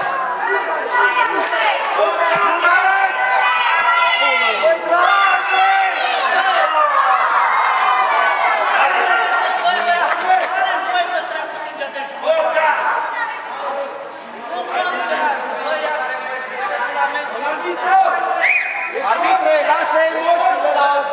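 Children shout and cheer in a large echoing hall.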